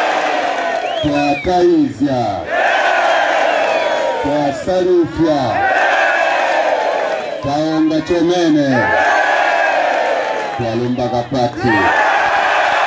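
A man shouts short calls to a crowd outdoors.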